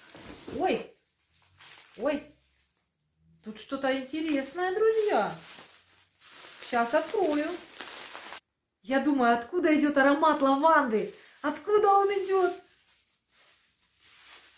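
Plastic wrapping crinkles in a woman's hands.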